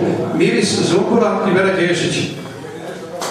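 A middle-aged man speaks into a microphone through loudspeakers.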